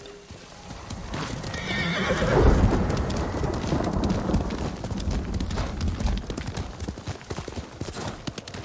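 A horse gallops, its hooves pounding quickly on a dirt path.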